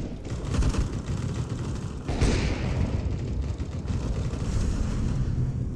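A heavy wooden door swings open with a creak and then swings shut.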